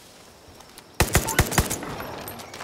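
A rifle fires several loud shots in quick succession.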